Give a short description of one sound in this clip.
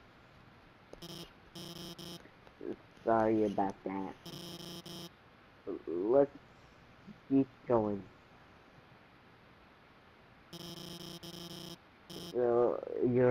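Rapid electronic blips chatter as text is typed out in a game.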